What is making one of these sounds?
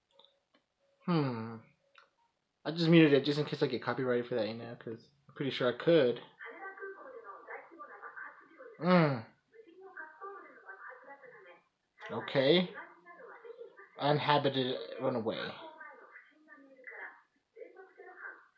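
A young man talks calmly and closely into a microphone.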